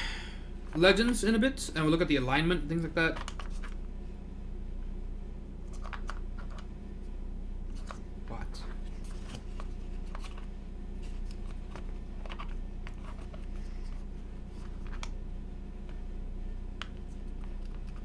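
Plastic keycaps click and clatter as they are pulled and handled.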